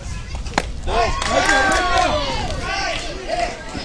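A bat cracks against a softball.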